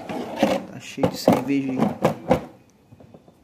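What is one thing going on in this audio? A plastic lid snaps shut on a cooler.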